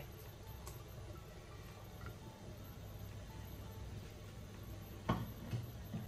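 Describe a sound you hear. Vegetable pieces drop and splash into a pot of liquid.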